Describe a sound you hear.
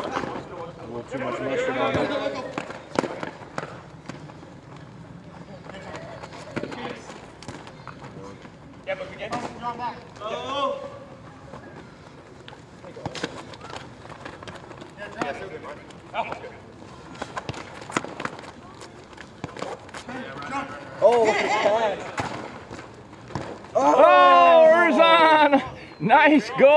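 Young men shout to each other across an open outdoor court.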